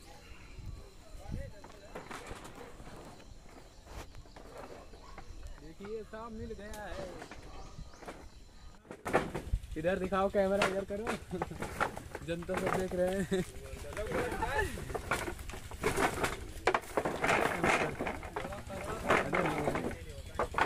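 A man hacks at bamboo with a blade.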